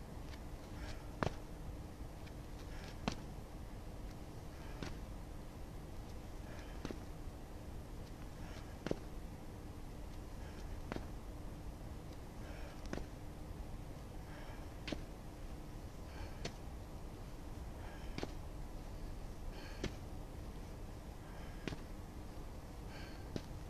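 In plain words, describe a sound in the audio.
Footsteps tap and scuff on hard ground outdoors at a steady pace.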